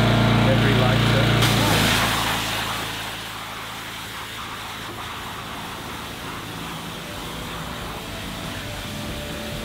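A pressure washer sprays water in a steady hiss onto concrete.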